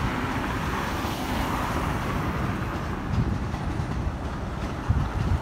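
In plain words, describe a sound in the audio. An electric train rumbles steadily along the tracks.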